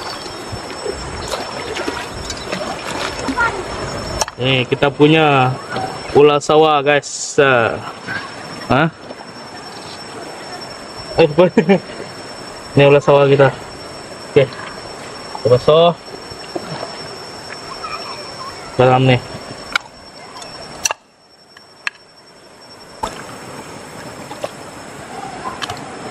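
A shallow stream flows and gurgles nearby.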